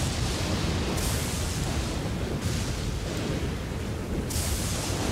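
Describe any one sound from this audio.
Heavy rain pours steadily outdoors.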